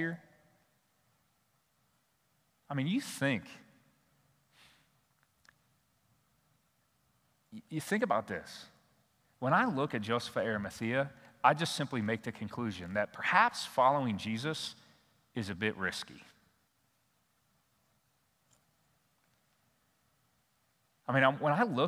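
A middle-aged man speaks calmly through a microphone, with pauses between phrases.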